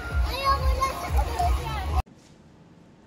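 Water splashes in a pool.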